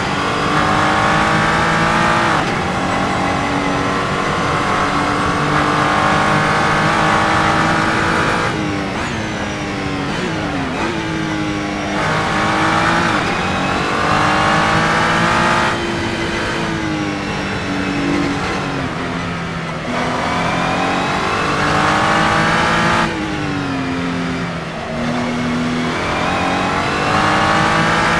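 A racing car engine roars loudly, revving up through the gears and dropping as it brakes for corners.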